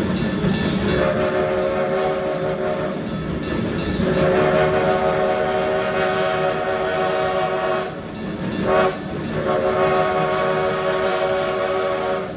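A steam whistle blows loudly in long blasts.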